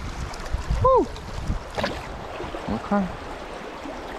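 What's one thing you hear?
Water splashes as a fish slips back into a river.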